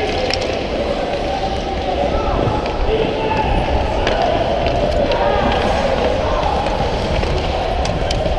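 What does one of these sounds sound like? Hockey sticks clack against the puck and ice.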